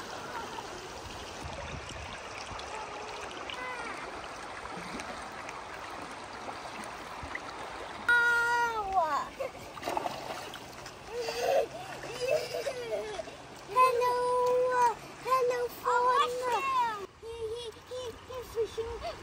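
A river flows and babbles over rocks.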